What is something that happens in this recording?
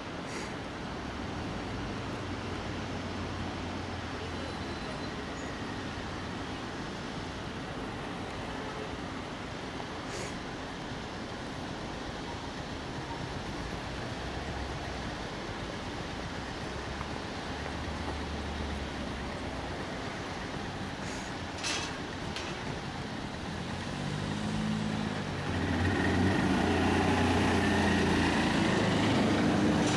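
A heavy van engine rumbles as it approaches slowly.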